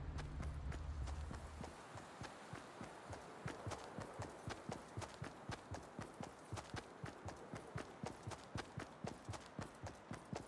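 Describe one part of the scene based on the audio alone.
Footsteps patter quickly and evenly on soft ground.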